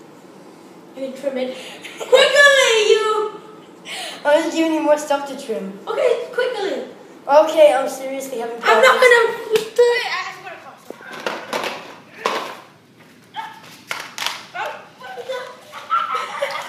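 A young boy talks and laughs with animation close by.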